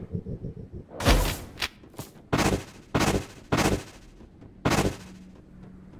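A game character dashes with repeated swift magical whooshes.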